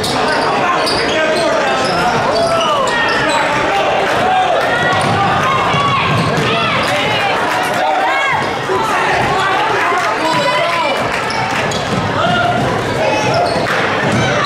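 Basketball shoes squeak on a hardwood court.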